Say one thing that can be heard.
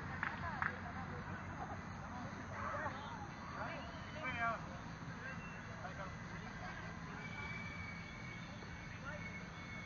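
Young players shout and call to each other across an open outdoor pitch.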